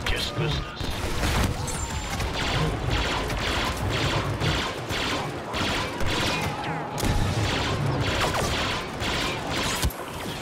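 Blasters fire in rapid bursts.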